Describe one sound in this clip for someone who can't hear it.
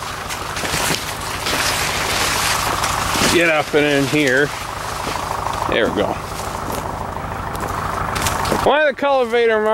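Tall leafy stalks rustle and brush together.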